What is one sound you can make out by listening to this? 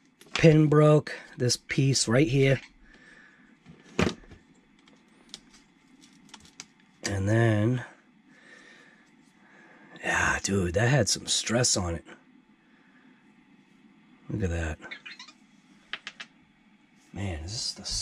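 Small plastic parts click and rattle as they are handled.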